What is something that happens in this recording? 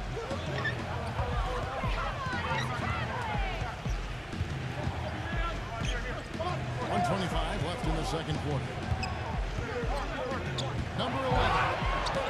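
Basketball shoes squeak sharply on a wooden court.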